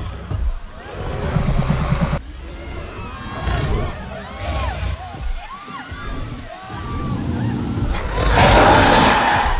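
A large creature roars loudly and deeply.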